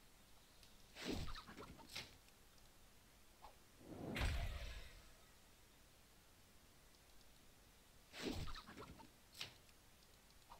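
A trap is thrown and lands on the ground with a thud and a metallic clatter.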